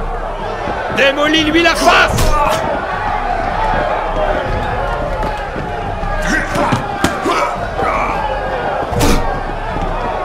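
Fists thud as men trade punches.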